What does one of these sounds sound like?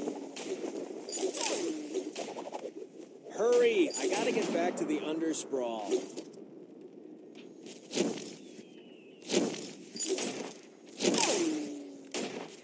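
Magic blasts and impacts whoosh and crack in a fight.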